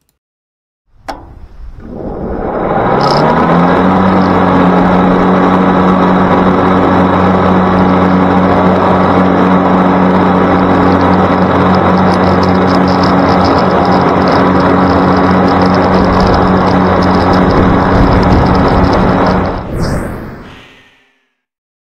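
A riding lawn mower engine roars loudly and steadily close by.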